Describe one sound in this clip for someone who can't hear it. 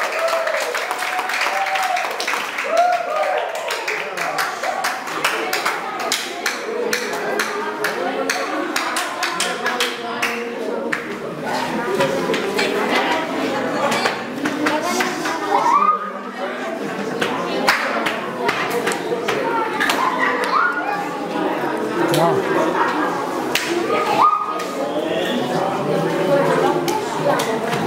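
A crowd of children and young people chatter and shout loudly in an echoing room.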